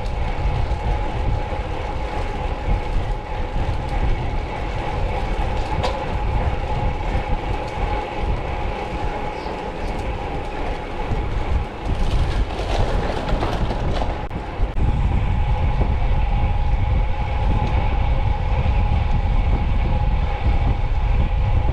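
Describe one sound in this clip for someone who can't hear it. Wind rushes and buffets loudly past a cyclist riding outdoors.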